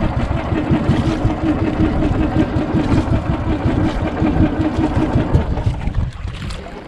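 A boat engine drones steadily nearby.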